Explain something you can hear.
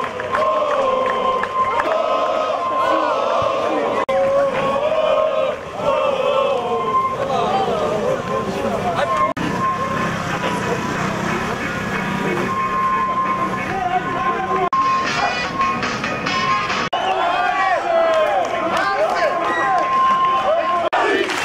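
A large crowd of men chants and shouts outdoors.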